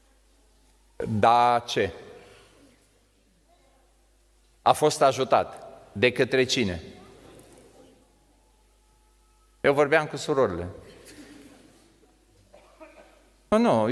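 An elderly man speaks slowly in short phrases through a microphone, with pauses, in a reverberant hall.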